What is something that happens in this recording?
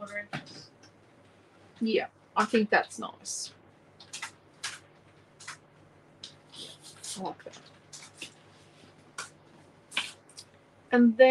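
Paper rustles and slides across a hard surface.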